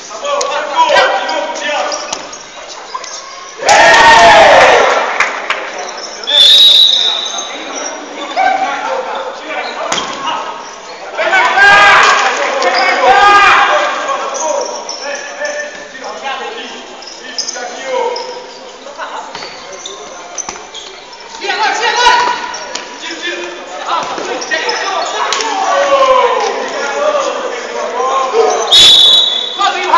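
Spectators and players shout and cheer in a large echoing hall.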